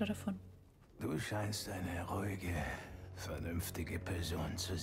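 A man speaks in a deep, calm voice.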